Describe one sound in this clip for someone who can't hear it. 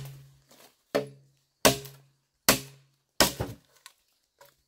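A machete chops into bamboo with sharp, ringing knocks.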